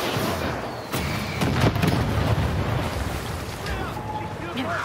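An explosion booms close by with a deep rumble.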